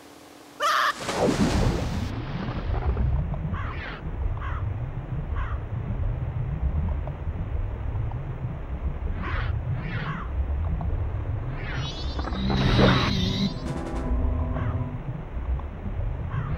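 Deep underwater rumbling goes on steadily.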